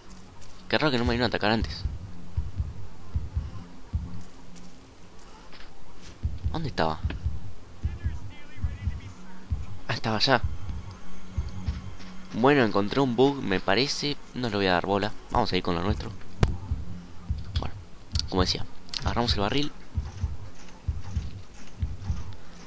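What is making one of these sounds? Footsteps thud quickly on grass and soft ground.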